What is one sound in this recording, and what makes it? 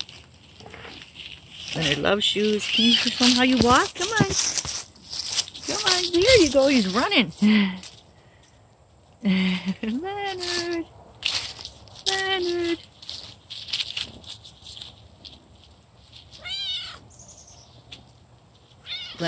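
A cat scampers and rolls through dry leaves, rustling them softly.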